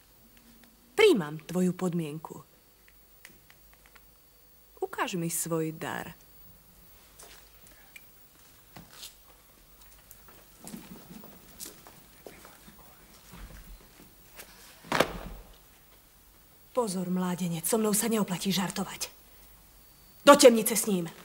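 A woman speaks in a calm, commanding voice.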